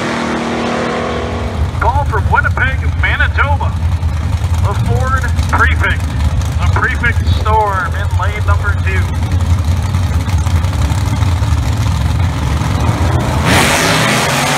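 Race car engines rumble steadily at idle nearby.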